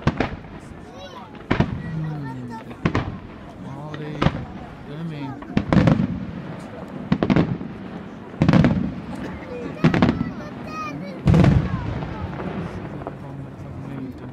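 Firework rockets whistle as they rise.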